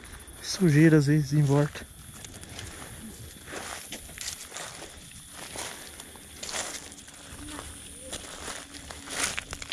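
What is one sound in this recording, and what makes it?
Footsteps crunch on loose gravel outdoors.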